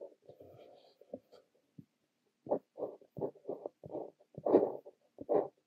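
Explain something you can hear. A fountain pen nib scratches across paper in short strokes, close up.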